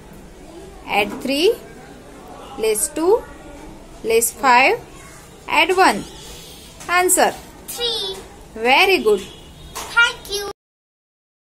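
A young girl speaks in short, clear bursts close by.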